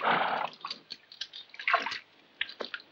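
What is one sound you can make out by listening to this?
A horse snorts close by.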